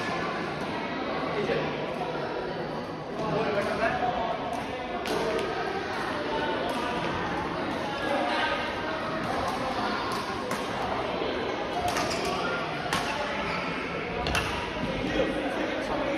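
Men's voices chatter in a large echoing hall.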